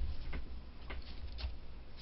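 A brush dabs against an ink pad.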